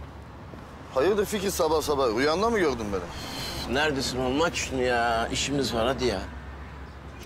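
A middle-aged man speaks with emotion up close.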